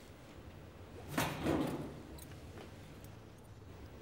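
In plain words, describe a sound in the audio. A metal lid creaks open.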